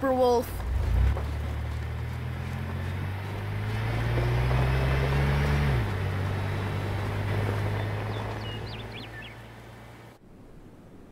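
A truck engine rumbles steadily and then drives off.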